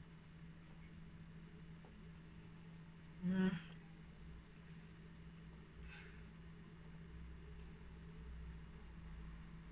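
A woman sips a drink from a mug.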